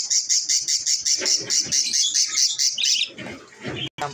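A budgie chirps rapidly and shrilly close by.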